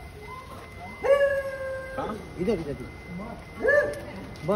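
Men call out loudly nearby.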